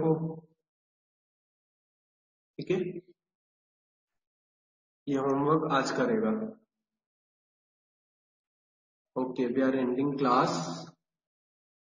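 A man speaks through an online call in short bursts, with pauses between.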